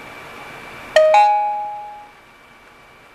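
A phone gives a short electronic chime.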